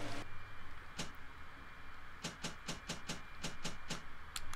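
Game menu clicks tick quickly as items are scrolled through.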